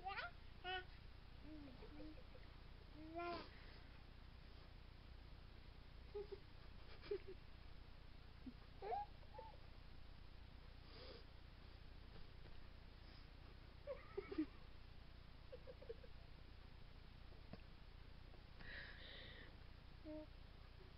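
Two babies babble and squeal close by.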